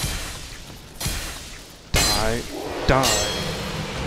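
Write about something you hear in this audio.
A sword strikes with a heavy metallic clash.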